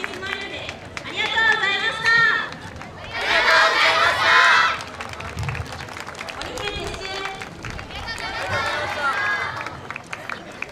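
A group of young women shout and chant loudly in unison outdoors.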